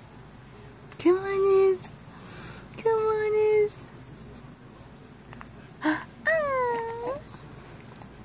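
A baby coos softly up close.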